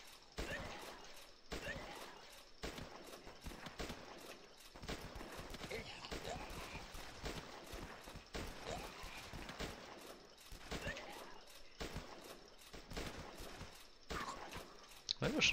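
Rifles fire in quick bursts of sharp shots.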